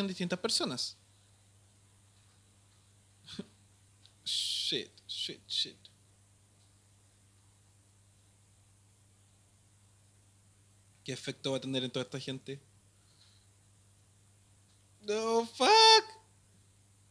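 A young man speaks with animation, close to a microphone, in short bursts with pauses.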